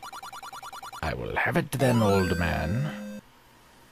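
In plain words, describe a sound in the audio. A short electronic fanfare plays.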